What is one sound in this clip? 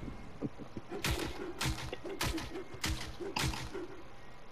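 Gunshots crack in quick succession nearby.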